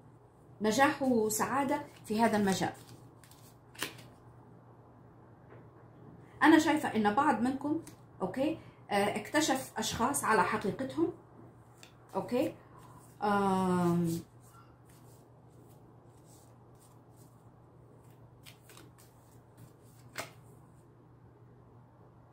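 Playing cards riffle and slap together as they are shuffled.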